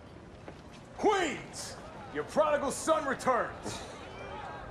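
A man shouts with excitement at a distance.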